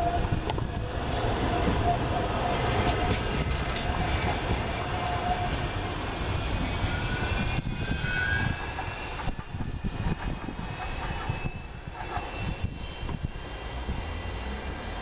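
An electric tram pulls away and rolls off along the rails, its motors whining as it fades into the distance.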